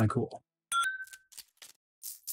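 A short game menu chime sounds as an item is selected.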